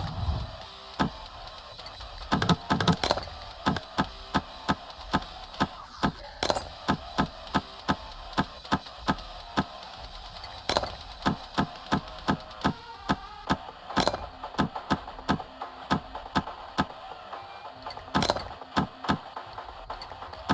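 A lock pick clicks and scrapes inside a metal lock.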